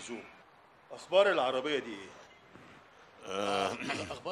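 A middle-aged man answers firmly, close by.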